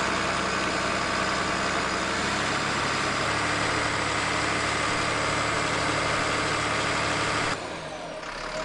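A heavy diesel engine rumbles steadily close by.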